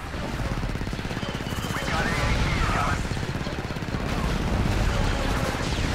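Video game blaster fire crackles in a battle.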